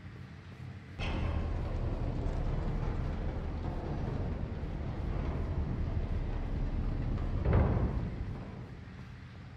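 A heavy crate scrapes and grinds across a hard floor.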